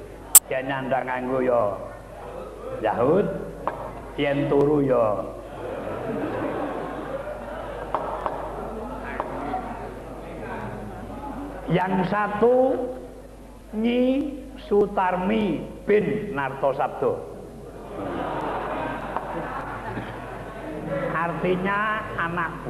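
A man speaks theatrically in changing voices, heard through a loudspeaker.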